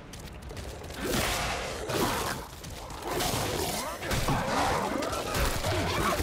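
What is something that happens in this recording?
A monster snarls and shrieks up close.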